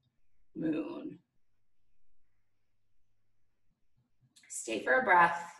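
A woman speaks calmly, close to the microphone.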